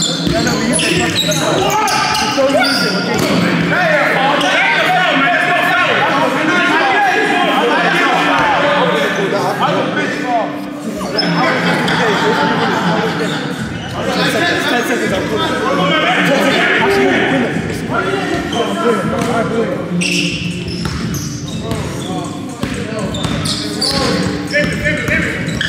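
Many young men talk and call out in a large echoing hall.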